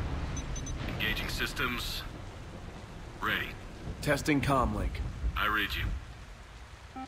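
A young man speaks calmly over a radio.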